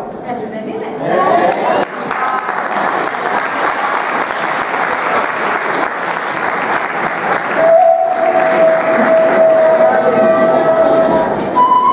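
A group of children and adults talk and call out over each other.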